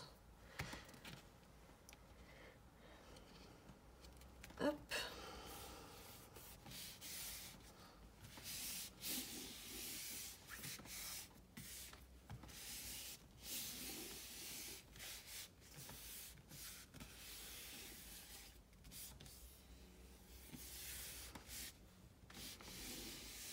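Hands rub and smooth over paper with a soft swishing.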